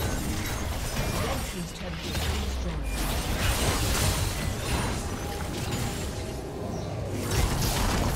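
Magic blasts crackle and boom in a fast, chaotic battle.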